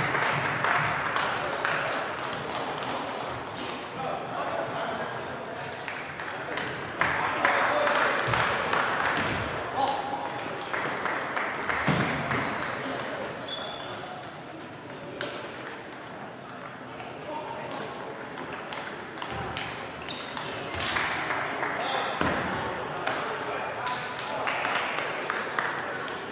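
A crowd of players and onlookers murmurs and calls out in the echoing hall.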